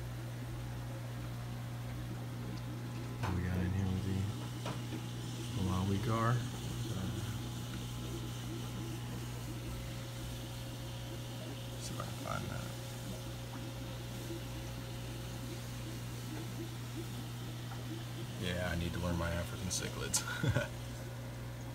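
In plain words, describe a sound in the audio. An aquarium filter hums steadily.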